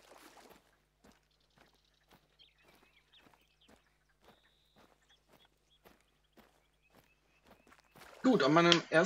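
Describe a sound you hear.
Footsteps crunch softly on dry ground.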